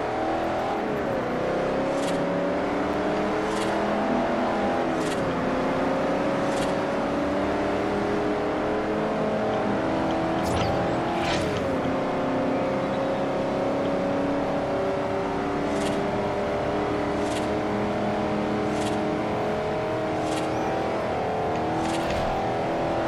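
A car engine roars at high revs and shifts gears as it speeds up.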